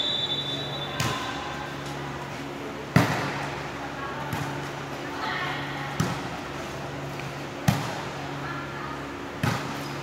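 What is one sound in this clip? A volleyball smacks against hands, echoing in a large hall.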